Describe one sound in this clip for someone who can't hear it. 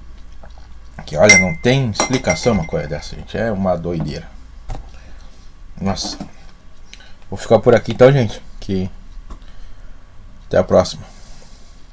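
A man talks calmly and close by, in short bursts with pauses.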